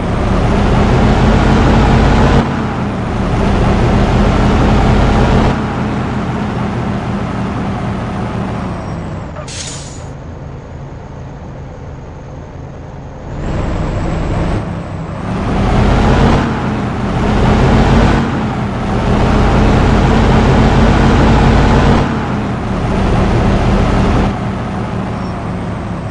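A bus engine rumbles and revs up and down.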